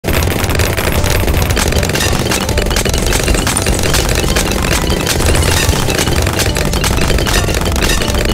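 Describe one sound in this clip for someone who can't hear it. Game towers fire in rapid bursts of popping and whooshing.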